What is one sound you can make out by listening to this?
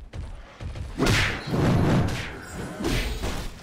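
A loud magical blast bursts and roars.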